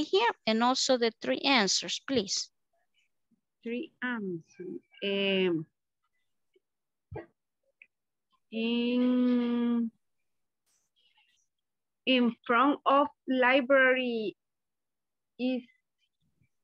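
A woman speaks slowly and clearly over an online call.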